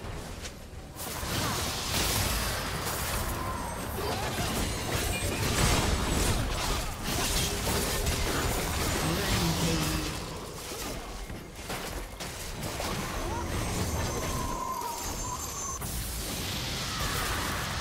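Game spell effects crackle and clash in a fight.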